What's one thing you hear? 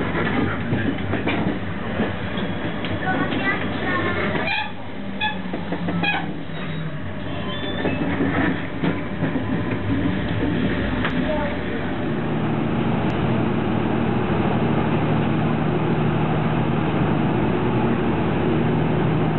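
A train rumbles and rattles steadily along the tracks, heard from inside a carriage.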